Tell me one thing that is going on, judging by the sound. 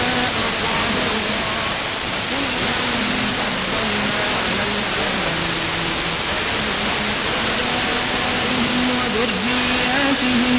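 Music plays through a small car radio speaker.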